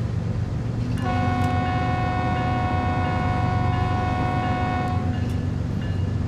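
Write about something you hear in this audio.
A train horn blows a long, loud chord.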